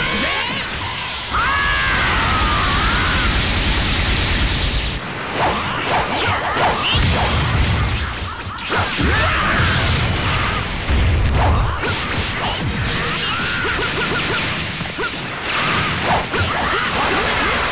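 Punches and kicks land with sharp hits again and again.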